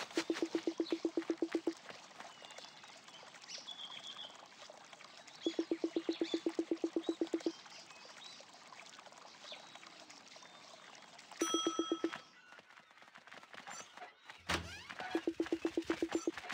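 Quick, soft chirping blips chatter in rapid bursts.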